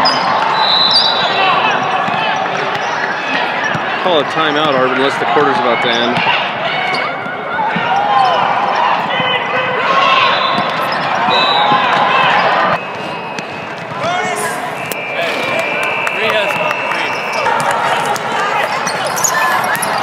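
A crowd of spectators chatters and cheers in a large echoing hall.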